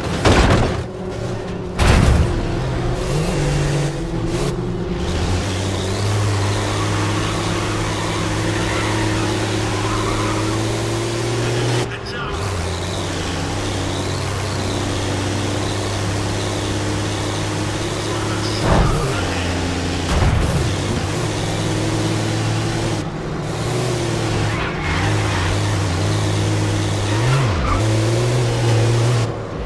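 A racing truck's engine roars at full throttle, with gear changes.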